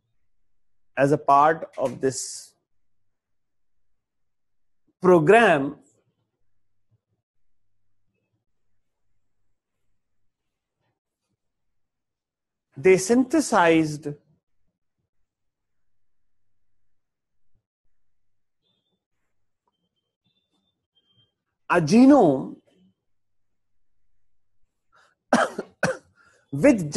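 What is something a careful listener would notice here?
A middle-aged man speaks calmly in short bursts with long pauses.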